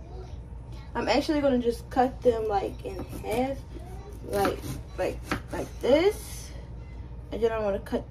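A knife cuts through a raw potato.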